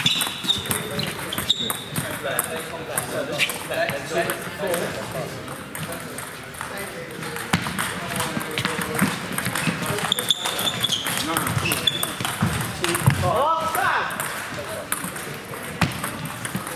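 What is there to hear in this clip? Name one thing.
Voices murmur in a large echoing hall.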